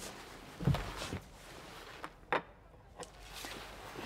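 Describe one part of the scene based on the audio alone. Shards of broken glass clink as hands gather them.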